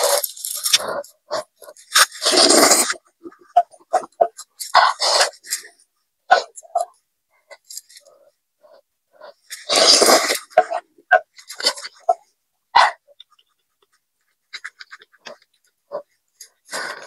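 A young woman chews and smacks her lips close by.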